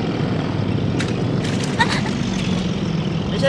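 A jeep splashes through a muddy puddle.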